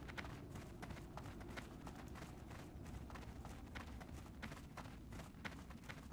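Footsteps patter quickly on stone as a figure runs.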